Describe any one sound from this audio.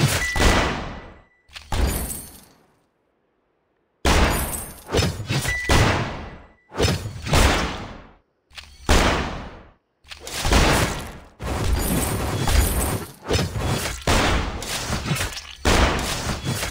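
Game spell blasts and hits boom in quick bursts that ring out and fade.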